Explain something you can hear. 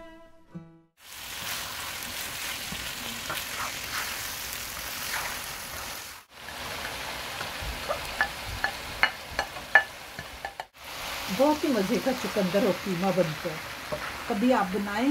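Food sizzles and crackles in a hot frying pan.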